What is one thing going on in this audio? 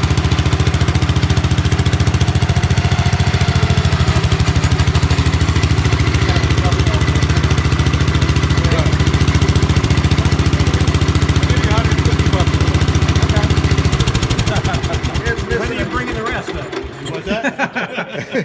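A small engine idles loudly and steadily, then sputters and winds down to a stop.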